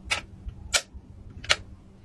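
A toothpaste dispenser clicks as a toothbrush presses into it.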